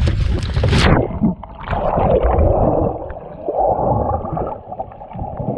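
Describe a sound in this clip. Water gurgles and rushes underwater.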